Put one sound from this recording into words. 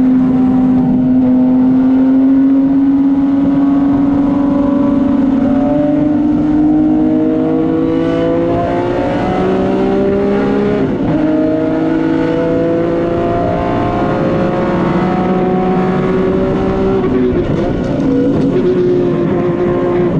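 A race car engine roars loudly from inside the cabin, rising in pitch as it speeds up and dropping at gear changes.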